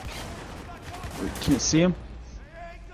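A gun fires a few loud shots.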